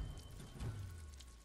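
Blades strike and clash in a fight.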